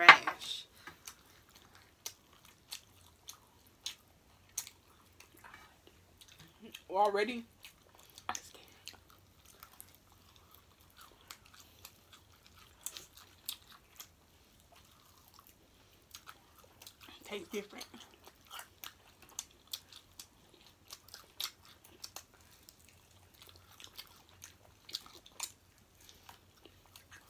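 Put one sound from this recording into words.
Two women chew and smack their lips loudly close by.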